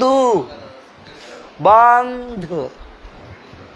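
A man calls out loudly in long, drawn-out cries close by.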